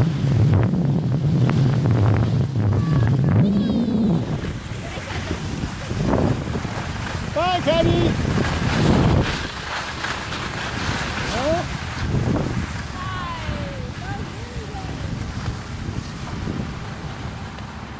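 Skis scrape and hiss across snow.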